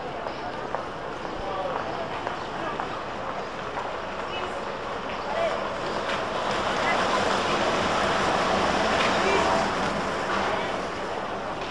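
A trolleybus hums past at close range.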